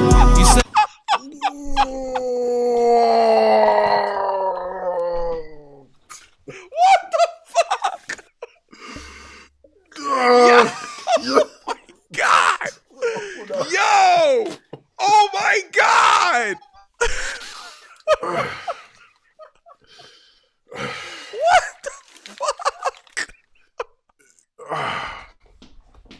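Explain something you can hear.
A man laughs loudly and exclaims over a microphone.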